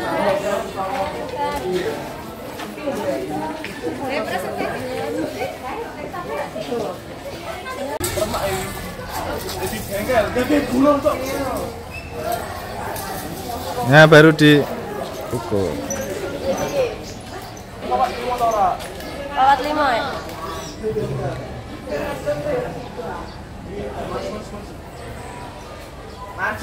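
Teenage boys and girls talk and call out to each other.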